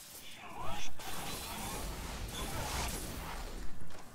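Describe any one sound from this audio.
Energy blasts crackle and explode.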